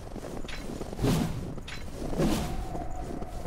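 A spear whooshes through the air.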